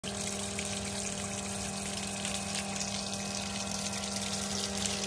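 A small electric pump hums steadily.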